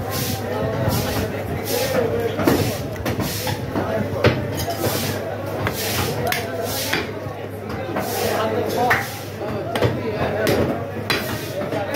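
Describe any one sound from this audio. Raw meat squelches and slaps wetly as it is pulled apart and handled.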